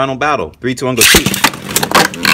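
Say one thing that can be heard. A spinning top launcher rips sharply.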